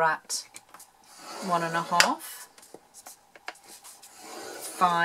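A metal stylus scratches and scores along paper.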